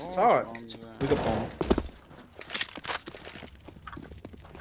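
A rifle fires in short, sharp bursts.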